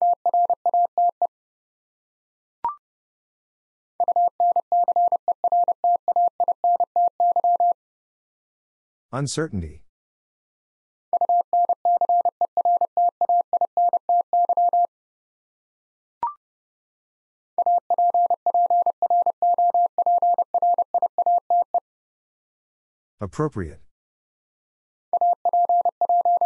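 Morse code beeps out in quick, even bursts of a steady tone from a telegraph key.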